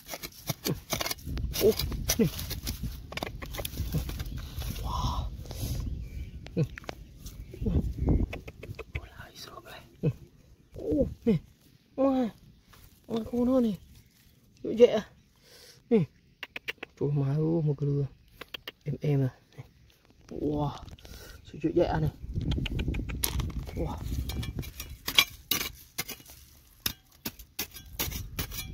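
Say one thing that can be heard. A small metal pick scrapes and digs into dry, stony soil.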